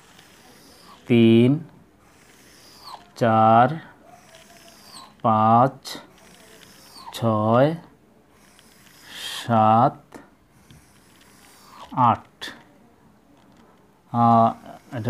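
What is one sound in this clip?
A man speaks in short, loud, drawn-out calls at steady intervals, close by.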